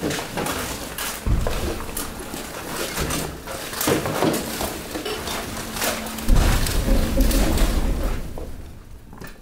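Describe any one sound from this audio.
Loose rubbish tumbles and rustles down onto a heap.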